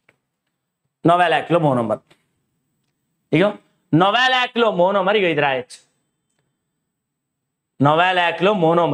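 A young man explains calmly and clearly, speaking close to a microphone.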